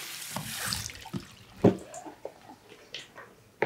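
A spray bottle spritzes a few times.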